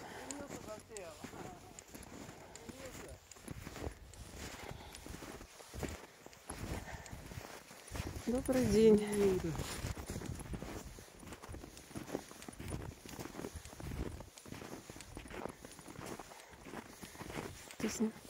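Footsteps crunch through snow at a steady walking pace.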